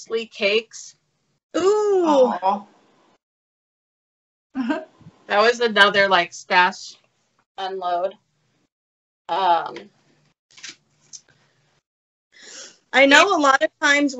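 Middle-aged women talk with animation over an online call.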